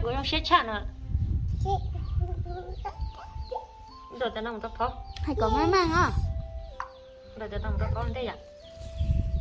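A little girl talks in a high voice.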